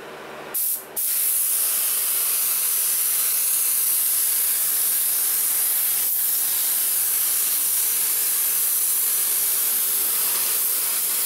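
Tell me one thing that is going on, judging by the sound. A spray gun hisses steadily with a rush of air.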